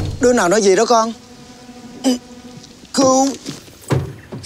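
A man speaks loudly, calling out.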